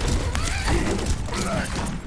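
A rifle fires sharp shots in quick bursts.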